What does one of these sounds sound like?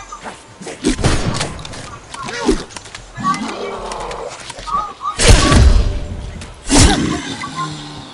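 A shotgun fires loudly several times.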